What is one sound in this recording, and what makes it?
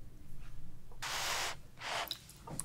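A woman slurps food close to a microphone.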